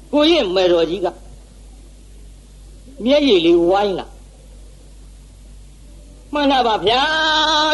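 An elderly man chants slowly in a drawn-out, wavering voice.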